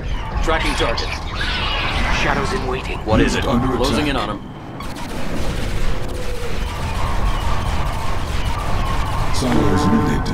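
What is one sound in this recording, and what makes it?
Laser weapons zap and hum in rapid bursts.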